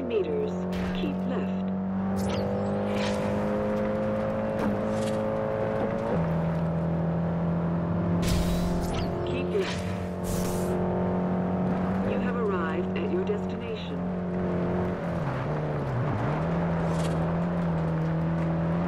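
A car engine hums steadily at high speed, shifting gear now and then.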